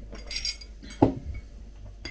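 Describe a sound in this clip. A mug knocks down onto a table.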